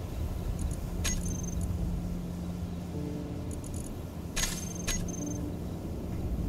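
Short electronic clicks and beeps sound from a game menu.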